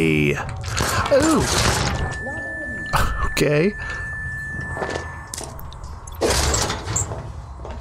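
A gun fires in a game.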